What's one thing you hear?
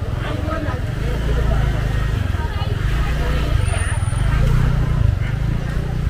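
A motorbike engine idles and rumbles nearby.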